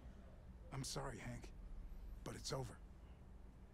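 A man speaks softly and apologetically close by.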